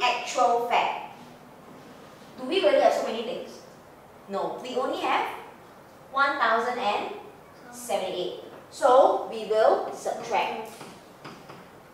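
A woman speaks clearly into a microphone, explaining.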